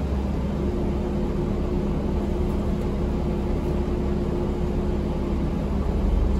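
A bus engine hums steadily with a low rumble.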